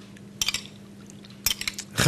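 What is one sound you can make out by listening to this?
A spoon clinks against a glass bowl.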